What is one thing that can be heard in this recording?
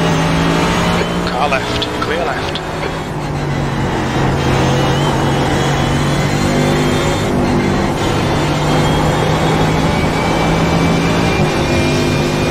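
A gear change cuts the engine note briefly.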